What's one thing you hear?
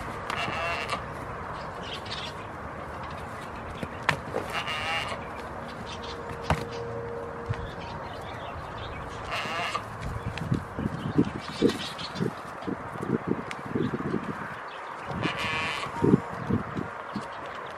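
Goats rustle and munch dry hay.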